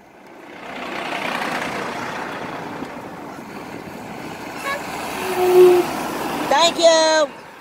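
A large truck roars past close by.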